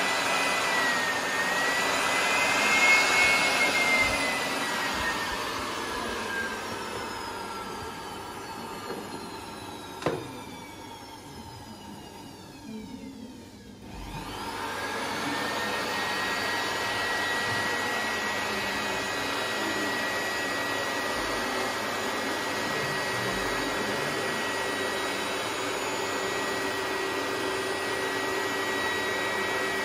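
An electric blower whirs steadily, winds down, then speeds up again.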